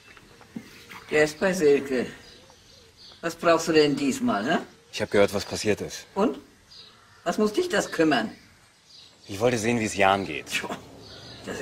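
A man speaks up close with some surprise.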